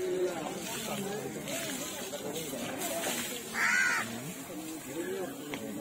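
Water sprays from a hose and splashes onto an elephant.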